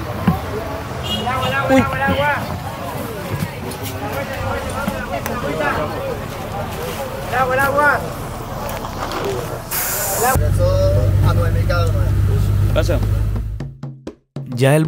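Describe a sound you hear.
A young man talks loudly nearby.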